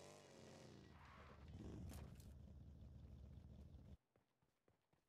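A buggy engine roars loudly.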